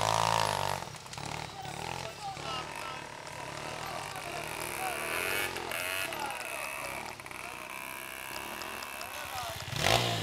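Dirt bike engines drone in the distance.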